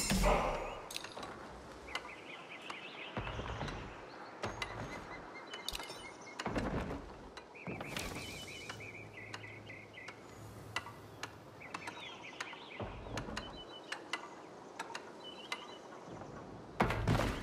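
Soft menu clicks tick now and then.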